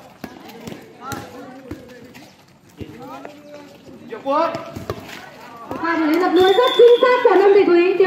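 A volleyball thumps off players' forearms and hands.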